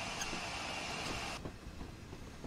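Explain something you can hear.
Steam hisses loudly from a locomotive, then cuts off.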